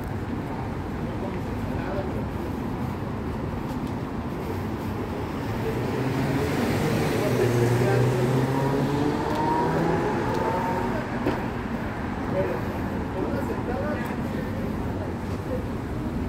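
Traffic hums steadily along a nearby street outdoors.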